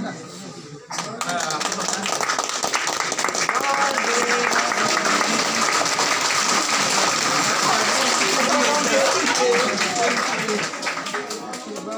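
A group of people claps hands steadily.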